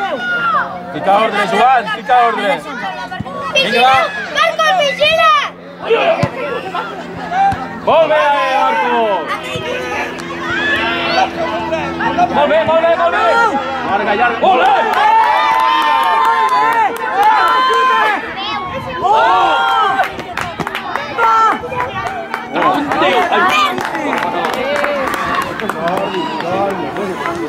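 Children shout and call out across an outdoor football pitch.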